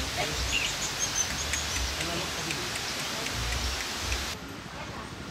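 A man talks calmly outdoors.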